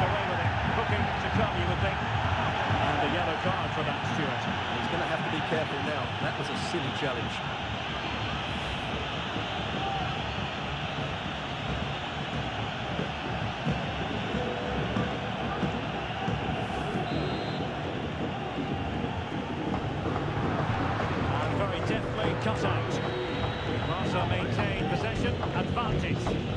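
A large stadium crowd roars and chants steadily throughout.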